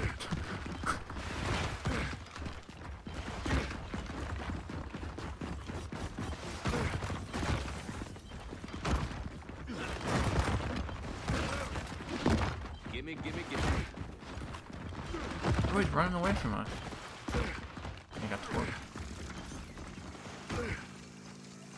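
Heavy boots thud on stone as a soldier runs.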